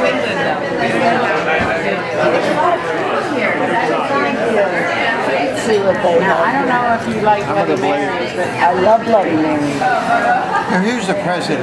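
Many voices of men and women chatter throughout a busy, echoing room.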